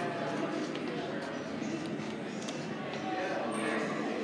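A finger presses an elevator call button with a soft click.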